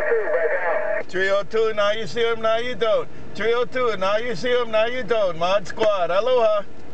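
A second man answers loudly and clearly through a radio loudspeaker.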